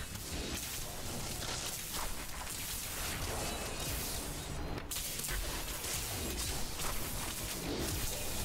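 Magic spells crackle and explode in rapid bursts.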